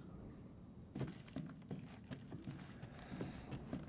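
Footsteps walk slowly along a wooden floor.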